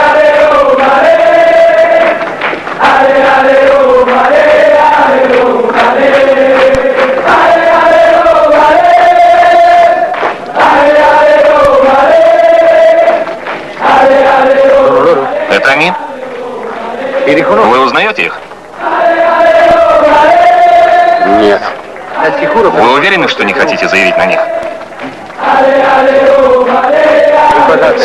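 A large crowd of men chants loudly in unison, in rhythmic repeated phrases.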